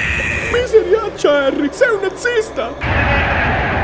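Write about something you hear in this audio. A young boy shrieks in terror.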